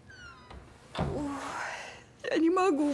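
A woman sobs and moans.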